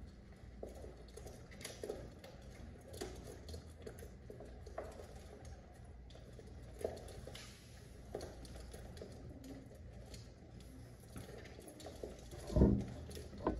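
Pigeons coo softly nearby.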